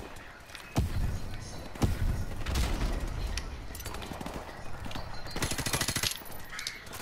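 A rifle fires rapid bursts close by.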